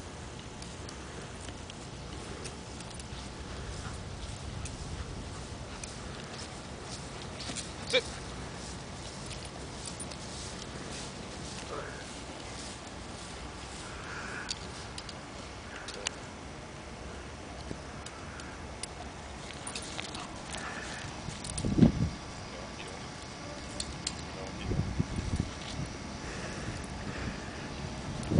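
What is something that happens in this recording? A man gives short, calm commands to a dog.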